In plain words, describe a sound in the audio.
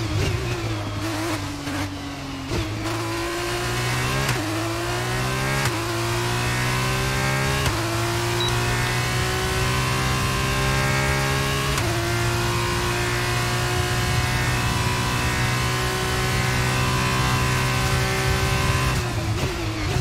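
A racing car engine screams, rising in pitch through each gear and dropping with each shift.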